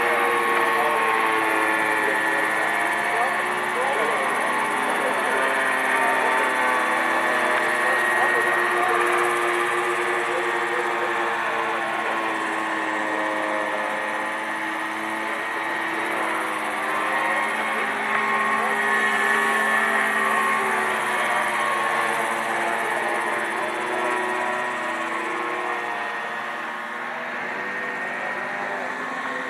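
A model helicopter's engine whines steadily with shifting pitch as it hovers and flies close by.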